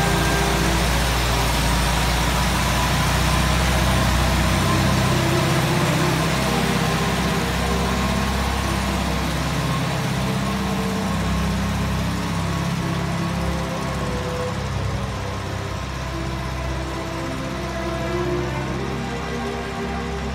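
An old van engine rumbles as the van drives slowly nearby, then pulls away.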